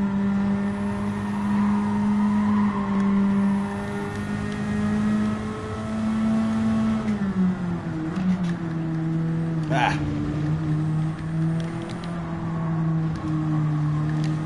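A racing car engine roars steadily at high revs, then drops in pitch as the car slows for a bend.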